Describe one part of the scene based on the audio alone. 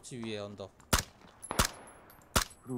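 Rifle shots crack sharply outdoors.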